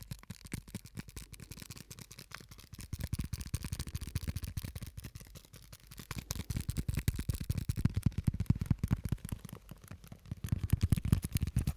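Fingers tap and crinkle an object close to a microphone in rapid clicks.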